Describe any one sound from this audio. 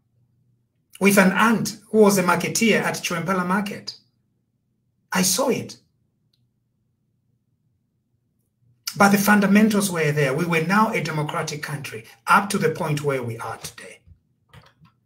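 A man speaks calmly and with animation over an online call, in short bursts with pauses.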